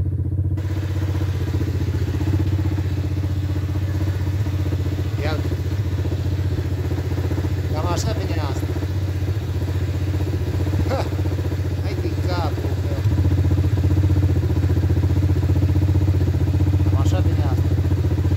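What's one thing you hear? An engine idles with a steady low rumble close by.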